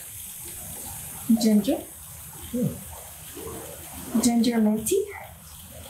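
Water pours from a tap into a bath.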